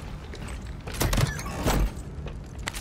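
A metal locker creaks and clanks open.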